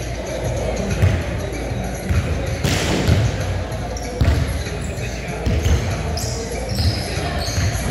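A basketball thumps on a hard floor, echoing in a large hall.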